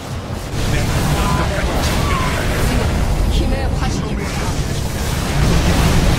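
Laser beams fire and buzz in a game battle.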